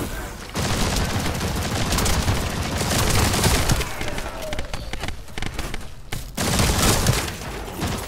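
Rapid gunfire rattles and booms in bursts.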